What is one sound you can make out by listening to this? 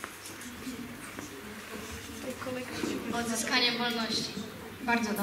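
A young woman reads aloud into a microphone in an echoing hall.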